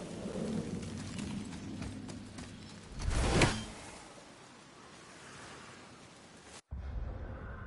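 Heavy footsteps run over grass and dirt.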